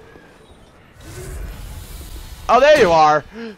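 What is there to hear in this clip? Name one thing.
A flame whooshes.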